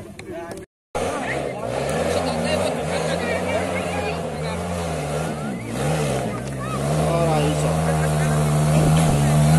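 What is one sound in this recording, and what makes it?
A distant dirt bike engine drones and grows closer.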